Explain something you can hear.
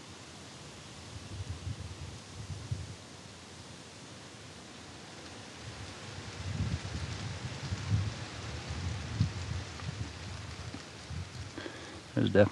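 Wind gusts softly rumble across the microphone outdoors.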